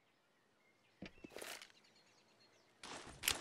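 A grenade pin clicks as it is pulled.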